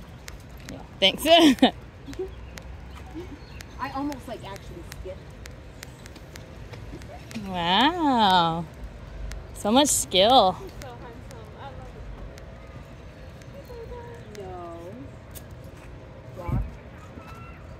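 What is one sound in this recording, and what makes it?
Footsteps patter on a paved path outdoors.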